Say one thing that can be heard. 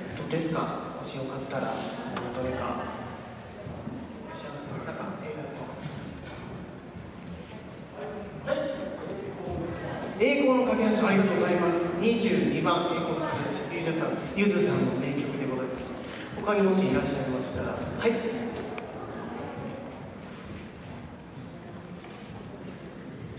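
A brass band plays in a large echoing hall.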